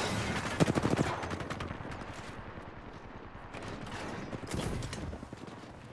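Rapid gunshots rattle in short bursts.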